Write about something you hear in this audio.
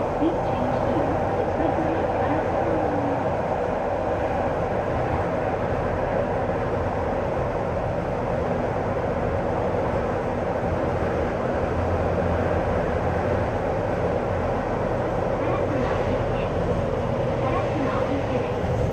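A train rumbles and roars steadily through a tunnel.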